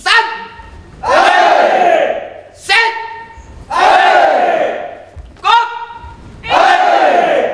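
A large group of young people shouts together in answer, echoing through the hall.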